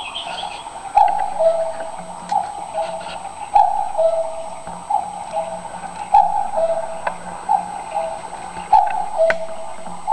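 A cuckoo clock calls its two-note cuckoo over and over.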